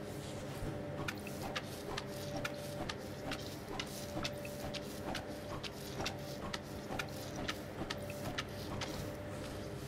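A stiff brush scrubs a hard surface in quick, rough strokes.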